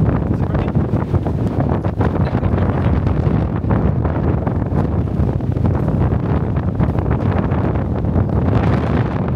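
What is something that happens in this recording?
Wind buffets loudly outdoors, rumbling steadily.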